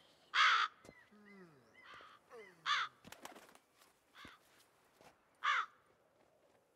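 Crows caw loudly in short harsh bursts.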